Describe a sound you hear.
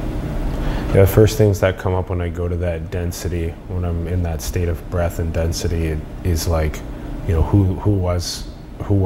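A young man speaks calmly and at length, close to a microphone.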